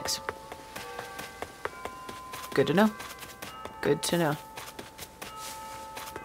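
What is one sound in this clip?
Light footsteps patter quickly on grass and paving.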